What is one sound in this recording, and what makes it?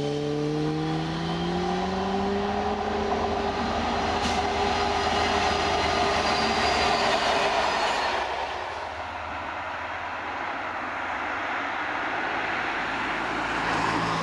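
A diesel locomotive engine roars loudly as a train passes close by.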